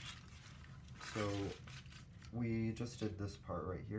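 A sheet of paper slides across a table.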